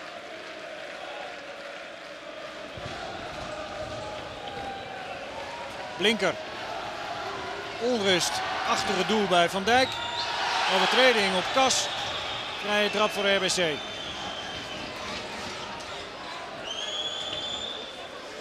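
A crowd murmurs and cheers in a large open stadium.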